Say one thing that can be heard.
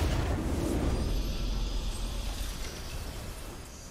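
A triumphant fanfare plays for a win.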